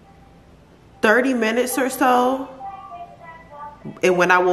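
A young woman speaks calmly and close up.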